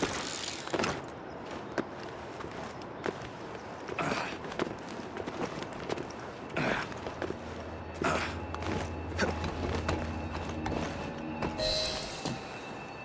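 Hands grip and scrape on stone in quick, sharp knocks during a climb.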